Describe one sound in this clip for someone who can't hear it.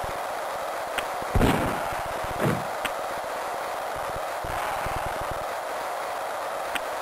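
A hockey stick smacks a puck with sharp electronic clicks.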